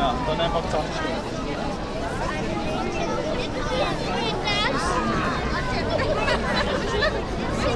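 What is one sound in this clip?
Children's high voices call out close by.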